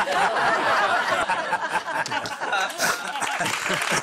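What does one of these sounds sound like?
Elderly men laugh and chuckle.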